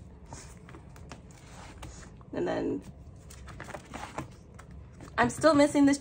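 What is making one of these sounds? Plastic binder sleeves rustle and crinkle as pages are handled.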